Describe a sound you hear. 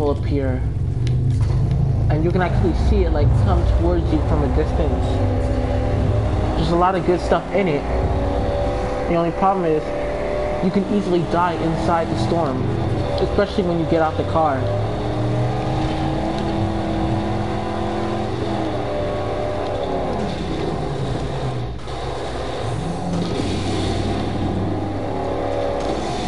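A video game car's engine roars and revs at speed.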